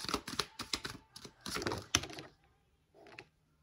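A playing card is laid down on a table with a soft tap.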